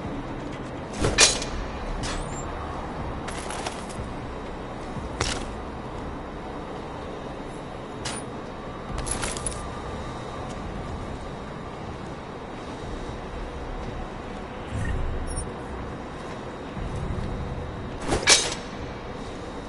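Metal locker doors clank open and shut.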